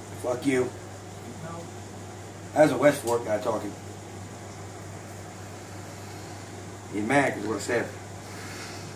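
A man talks calmly close by in short bursts.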